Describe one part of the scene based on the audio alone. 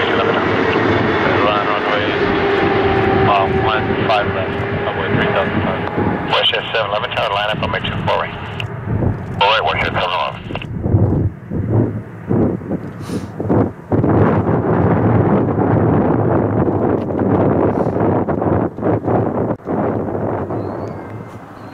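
A twin-engine jet airliner roars as it comes in to land.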